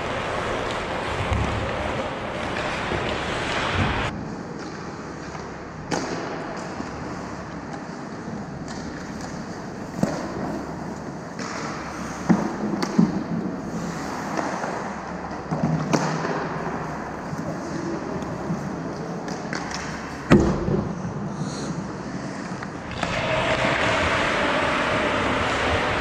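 Skates scrape and hiss across the ice.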